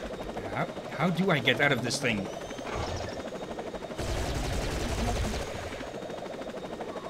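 A helicopter's rotor whirs with a steady chop.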